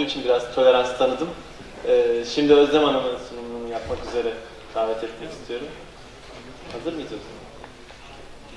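A man speaks through a microphone over loudspeakers in a large echoing hall.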